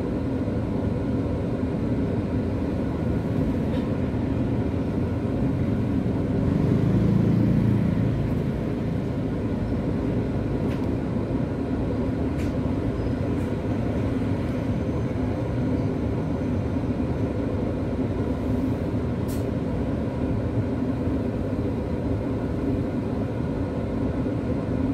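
Traffic hums along a street nearby.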